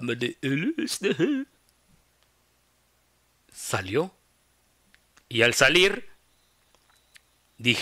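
A man speaks expressively and close to a microphone, in short bursts.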